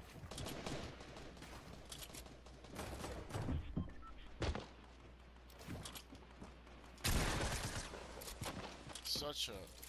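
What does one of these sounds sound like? Wooden walls and ramps are built with quick clattering thuds.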